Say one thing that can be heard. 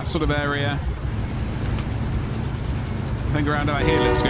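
A train rumbles and clatters along its tracks.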